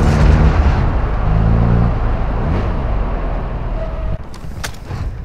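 A truck engine rumbles loudly as it drives.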